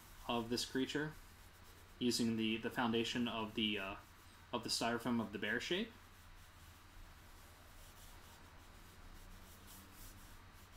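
A pen scratches lightly on paper.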